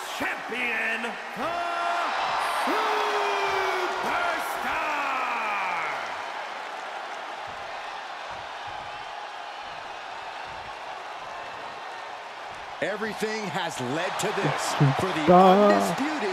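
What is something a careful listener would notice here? A large crowd cheers and whistles in a big arena.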